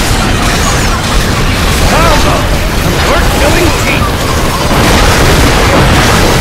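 Blasts of magic crackle and boom.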